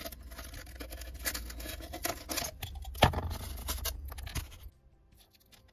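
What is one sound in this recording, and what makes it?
Pliers crunch and snap pieces off foam.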